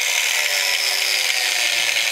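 An angle grinder's disc grinds against metal with a harsh rasp.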